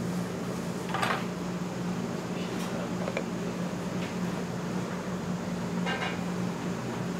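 Wooden lids knock and clatter on a table.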